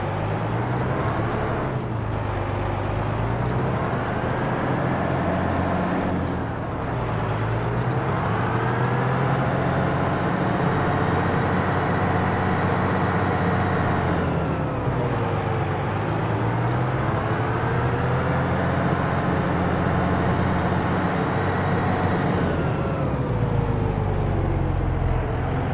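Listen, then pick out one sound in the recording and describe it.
A tractor engine drones steadily, its pitch rising and falling as it revs.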